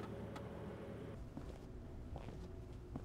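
Footsteps echo along a hallway.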